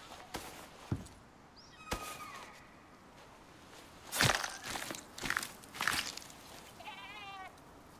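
A knife hacks wetly into an animal carcass.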